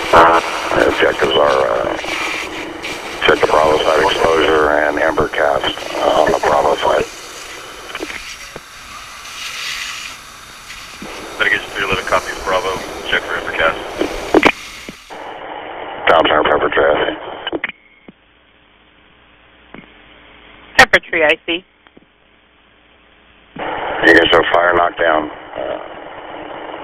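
Water hisses steadily from a fire hose.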